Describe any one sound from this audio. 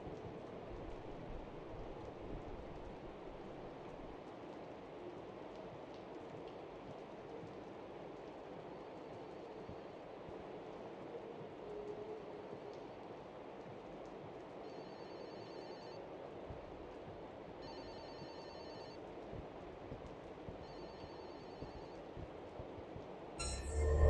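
Slow footsteps thud on a wooden floor.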